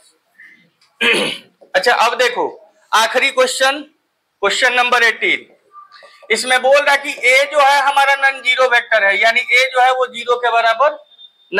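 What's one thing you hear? A man speaks clearly and steadily, as if explaining a lesson, close to the microphone.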